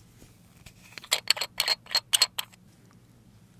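A small glass jar clicks and rattles as a lid is handled.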